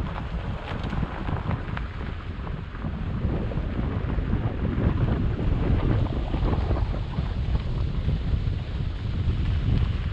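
Tyres rumble and crunch over a rough dirt road.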